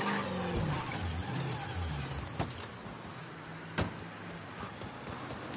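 A car engine idles with a low hum.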